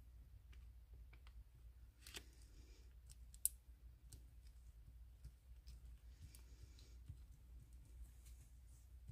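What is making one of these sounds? Gloved fingers press and rub against a soft silicone mould with faint squeaks and taps.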